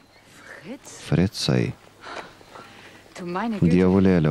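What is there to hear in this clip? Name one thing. A young woman answers calmly nearby.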